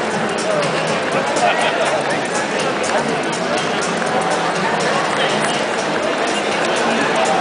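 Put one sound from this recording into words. A crowd chatters all around in a large echoing hall.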